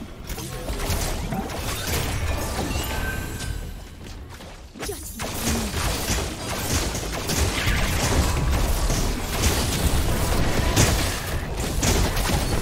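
Game spells burst and whoosh in quick succession.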